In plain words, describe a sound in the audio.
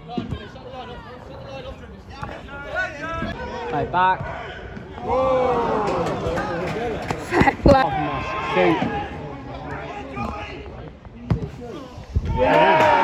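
Men shout across an outdoor pitch.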